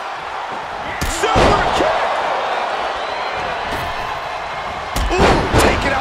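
Bodies thud heavily onto a wrestling mat.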